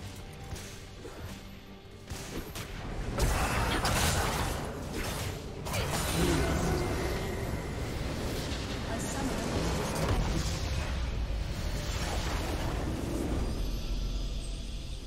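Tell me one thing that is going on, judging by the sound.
Game spells and attacks crash and blast in a busy fight.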